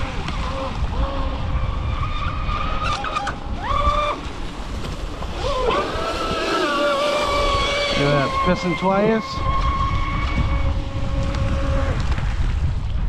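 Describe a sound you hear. A small motorboat's engine whines at high pitch, rising and falling as it speeds past.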